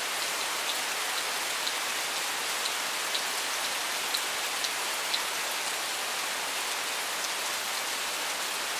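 Steady rain patters on leaves and gravel outdoors.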